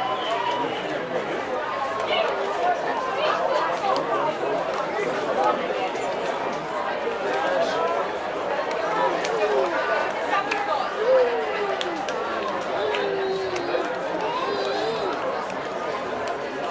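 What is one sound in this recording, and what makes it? Young men chatter and call out to each other nearby outdoors.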